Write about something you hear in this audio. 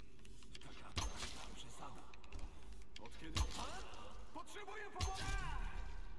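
A bow shoots arrows with sharp twangs.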